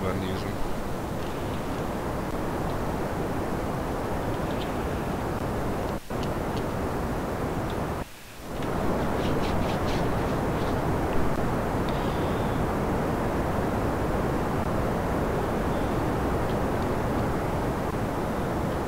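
A rocket engine roars steadily.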